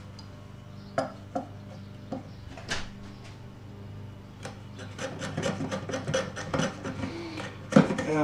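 A metal hand tool clicks and taps against wood.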